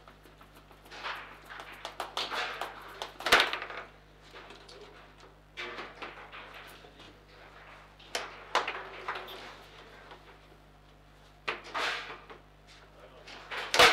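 A foosball ball clacks and rolls against the table's rods and walls.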